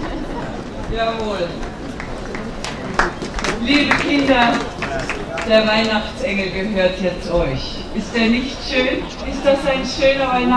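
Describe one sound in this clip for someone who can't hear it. A woman speaks into a microphone over loudspeakers with animation.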